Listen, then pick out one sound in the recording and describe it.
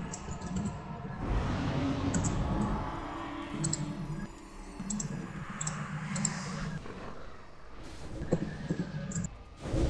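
Magic spells whoosh and crackle during a fantasy battle.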